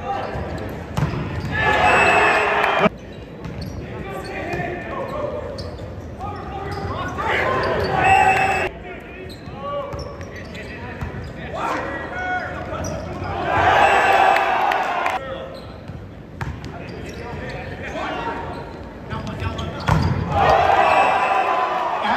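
A volleyball is struck with a slap in a large echoing hall.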